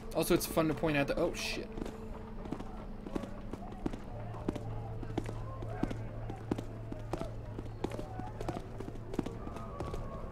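Footsteps tap on stone cobbles.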